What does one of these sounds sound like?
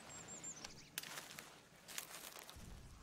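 A plant is plucked from the ground with a rustle.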